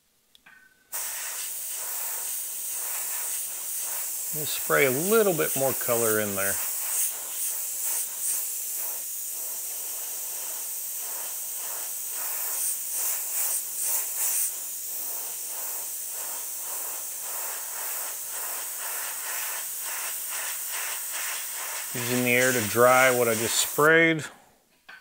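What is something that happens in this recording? An airbrush hisses steadily as it sprays.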